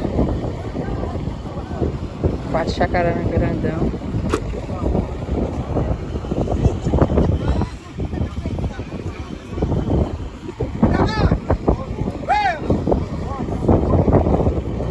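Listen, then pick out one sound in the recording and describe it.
Men and women chat casually nearby.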